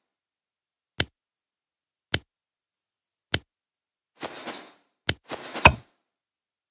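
Sharp clicks sound now and then.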